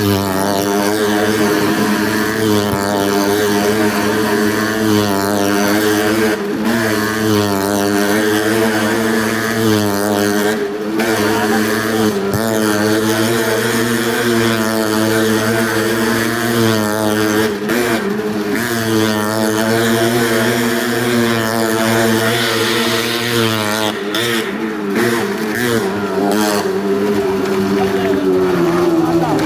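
Engines roar and rev loudly, echoing off a round metal wall.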